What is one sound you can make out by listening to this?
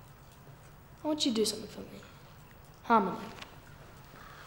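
A teenage boy speaks with a sneer close by.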